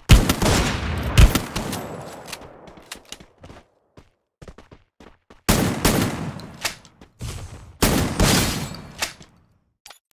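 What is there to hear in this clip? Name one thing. Gunshots ring out with a short echo.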